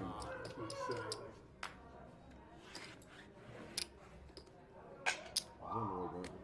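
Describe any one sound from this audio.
Casino chips click and clack against each other.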